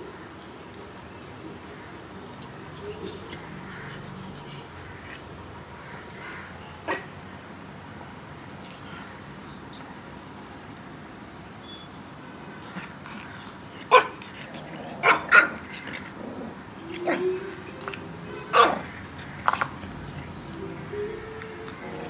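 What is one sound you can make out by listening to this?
A kitten chews and laps food from a bowl.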